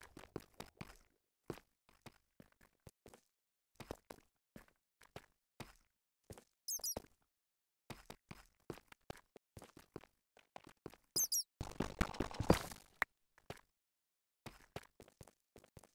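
Game footsteps tap on stone.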